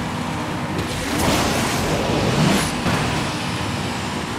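A nitro boost whooshes.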